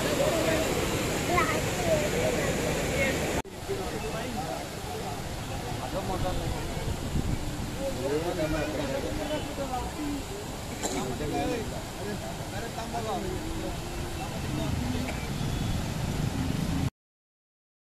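Water rushes over a weir.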